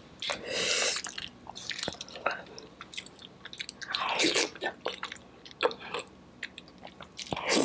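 A woman chews wet food with smacking sounds close to a microphone.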